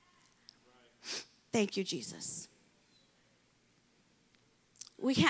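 A young woman speaks with feeling into a microphone, heard through loudspeakers.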